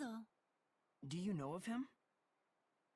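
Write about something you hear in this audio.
A young man asks a question calmly.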